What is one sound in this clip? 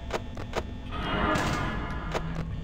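A heavy metal door slams shut with a loud clang.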